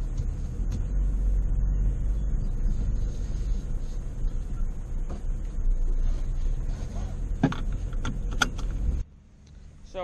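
A car engine rumbles as the car drives over bumpy ground.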